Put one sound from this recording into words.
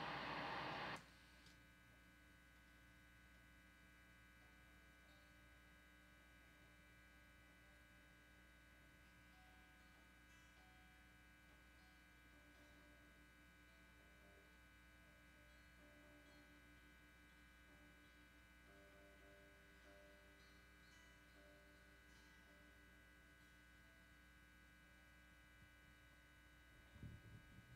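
Electric guitars play quiet, drawn-out notes.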